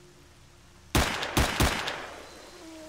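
A pistol fires several quick shots.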